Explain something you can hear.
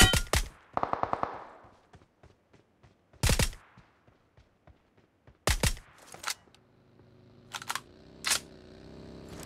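Sniper rifle shots crack loudly, one after another.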